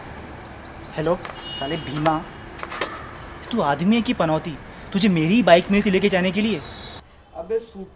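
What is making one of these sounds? A young man talks into a phone close by.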